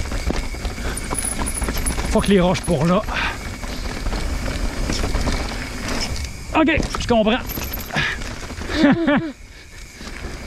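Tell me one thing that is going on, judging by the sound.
A bike frame rattles over bumps.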